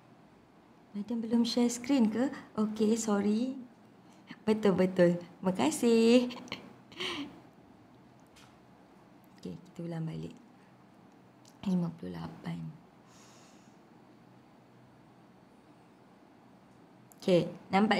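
A young woman talks calmly into a microphone, in short bursts with pauses.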